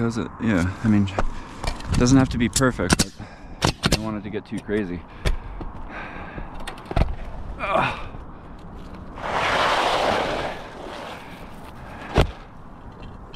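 A pneumatic nail gun fires nails into a roof with sharp bangs.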